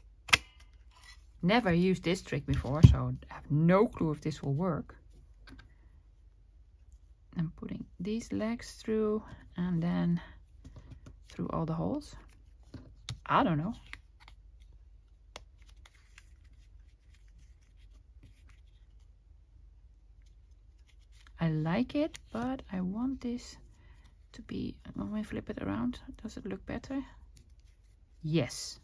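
Paper rustles softly as it is folded.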